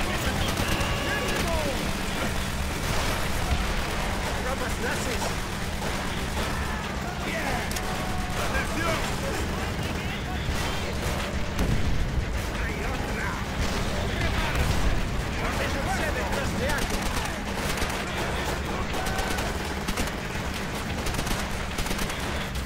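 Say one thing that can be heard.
A man talks through a headset microphone with animation.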